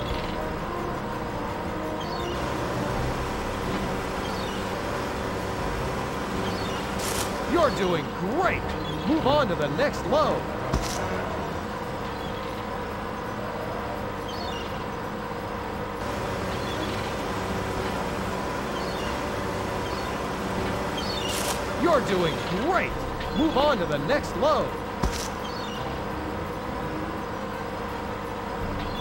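A digger engine hums steadily.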